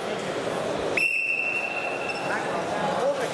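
A referee's whistle blows one long steady blast.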